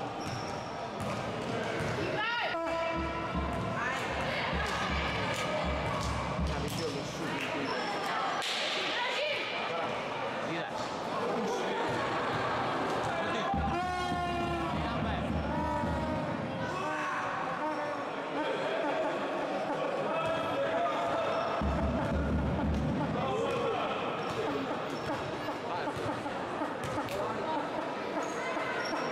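Young women shout to each other across the court.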